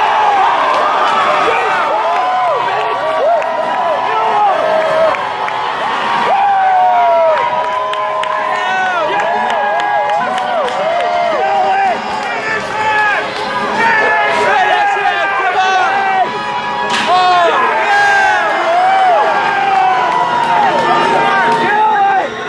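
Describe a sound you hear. A large crowd cheers and shouts loudly in a big echoing arena.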